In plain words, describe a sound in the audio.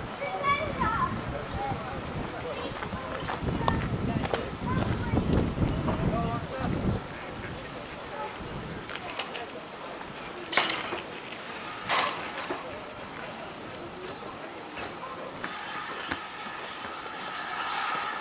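A steam locomotive chugs slowly closer.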